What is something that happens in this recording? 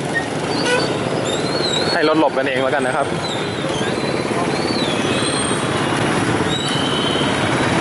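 Motorbike engines rumble in busy street traffic.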